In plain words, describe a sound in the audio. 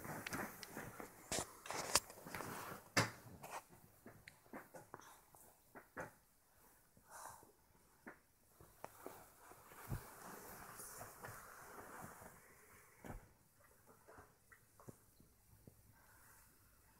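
Fabric rustles softly close by.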